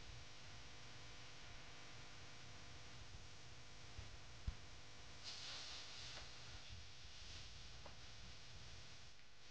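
Dancers stamp their feet on grass.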